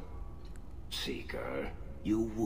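A man speaks quietly and wearily, close by.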